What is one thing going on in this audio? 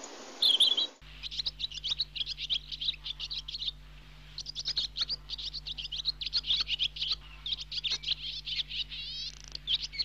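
A parrot screeches and chatters in quick bursts.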